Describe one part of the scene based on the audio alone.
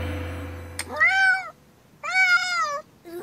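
A kitten meows twice in a high voice.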